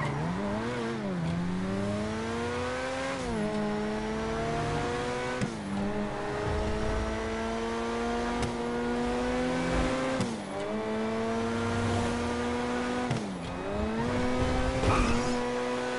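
A car engine revs high and shifts through gears as it speeds along.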